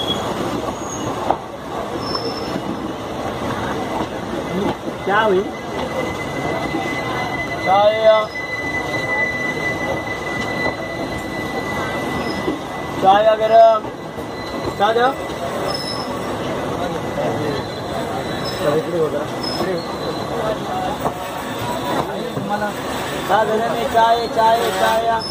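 A passing train rumbles and clatters loudly close by.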